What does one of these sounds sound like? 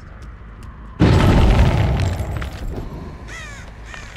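A loud eerie whoosh bursts in suddenly and slowly fades.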